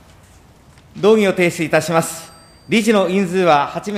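A middle-aged man speaks formally into a microphone.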